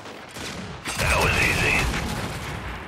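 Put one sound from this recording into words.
A large robot fires heavy weapons with booming blasts.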